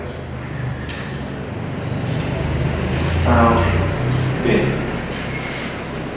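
Papers rustle as a man leafs through them.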